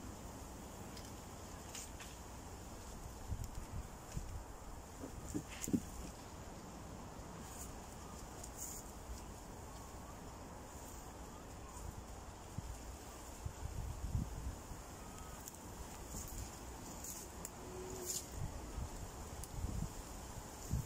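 Footsteps crunch on dry leaves and soil.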